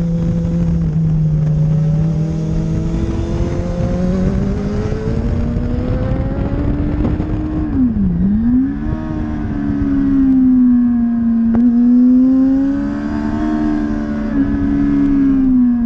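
A motorcycle engine roars loudly, revving up and dropping through the gears.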